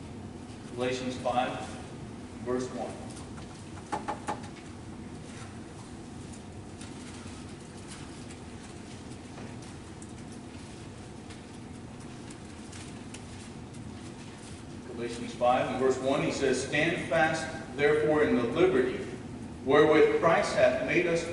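A man speaks with animation into a microphone, heard in a room with a slight echo.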